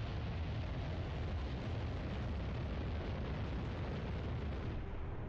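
A spacecraft's engines roar with a steady deep rumble.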